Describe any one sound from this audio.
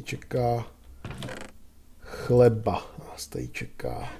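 A wooden chest thuds shut.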